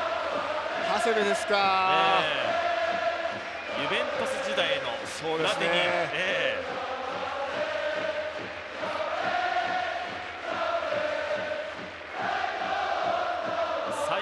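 A large stadium crowd chants and sings steadily outdoors.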